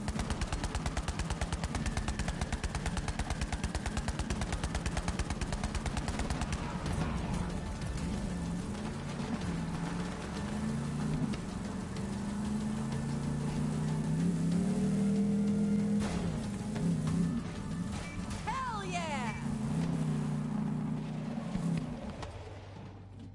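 A buggy engine roars and revs.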